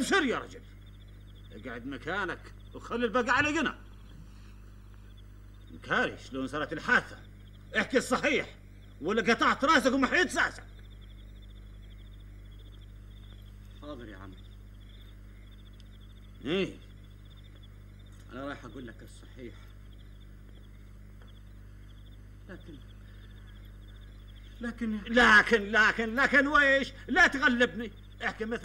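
An elderly man speaks slowly and gravely, close by.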